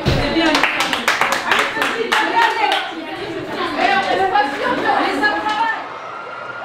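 Hands clap rapidly and loudly.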